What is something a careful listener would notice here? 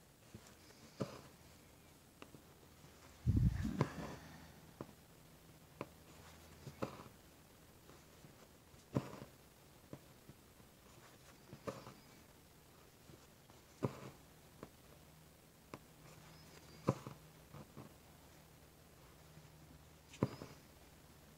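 A needle pokes through evenweave fabric with soft taps.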